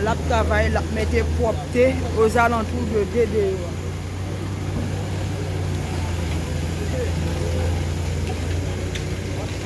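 A heavy loader's diesel engine rumbles steadily nearby.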